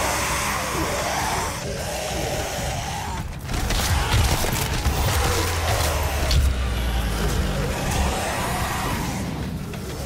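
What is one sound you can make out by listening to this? A heavy gun fires in loud blasts.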